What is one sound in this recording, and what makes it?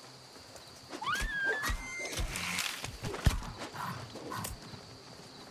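Magic blasts hit a creature in quick, sharp bursts.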